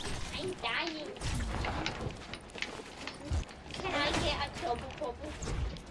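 Wooden walls snap into place with quick knocks.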